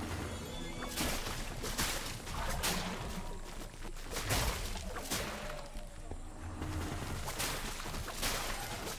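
Magic blasts whoosh and crackle in a fight.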